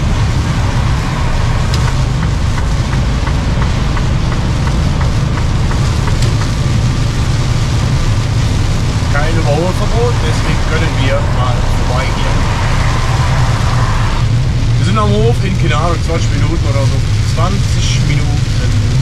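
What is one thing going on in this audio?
Raindrops patter on a windscreen.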